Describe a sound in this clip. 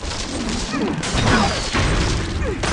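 A game explosion booms.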